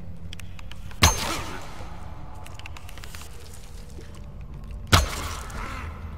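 A bowstring snaps sharply as an arrow is loosed.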